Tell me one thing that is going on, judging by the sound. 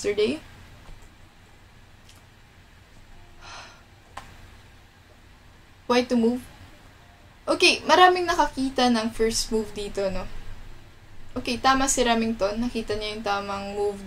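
A young woman speaks calmly and thoughtfully into a close microphone.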